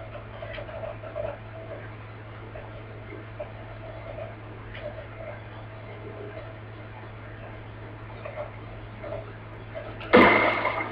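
Video game sound effects and music play from a television speaker.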